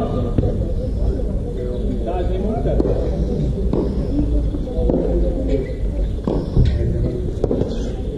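Footsteps scuff on a hard court.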